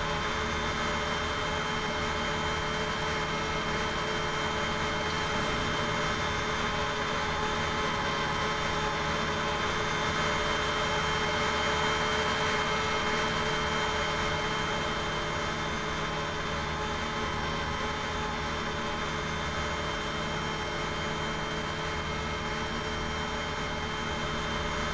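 Jet engines hum and whine steadily at idle.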